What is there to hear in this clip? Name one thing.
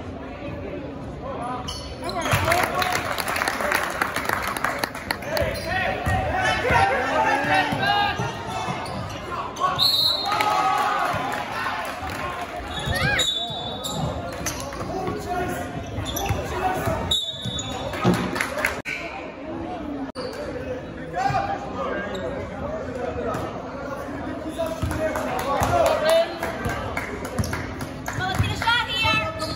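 A crowd murmurs and calls out in an echoing gym.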